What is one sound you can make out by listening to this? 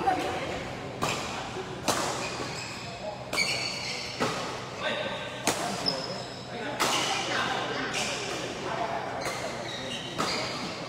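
Rackets smack a shuttlecock back and forth in a quick rally.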